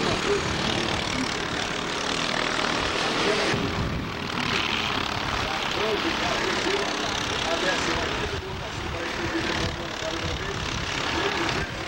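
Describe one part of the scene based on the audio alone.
Kart engines whine and buzz loudly as they race past.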